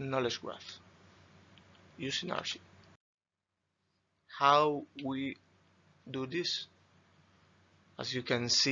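A man speaks calmly through a microphone, in short phrases with pauses.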